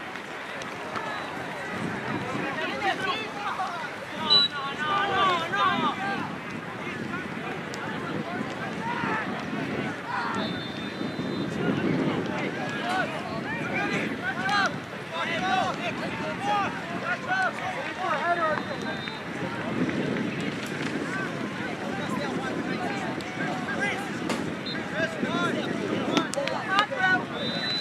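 A crowd of spectators chatters and cheers in the distance.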